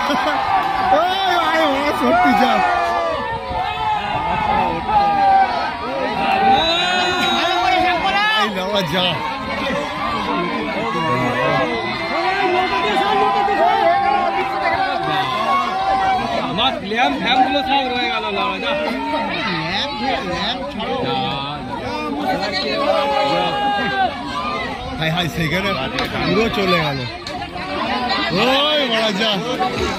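Several men talk and call out excitedly outdoors.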